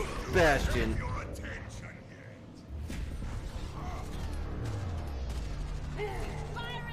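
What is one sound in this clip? A man exclaims loudly into a close microphone.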